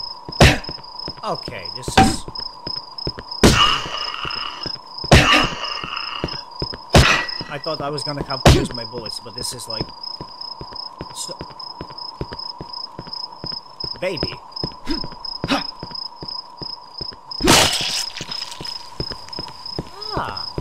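A man speaks casually into a headset microphone.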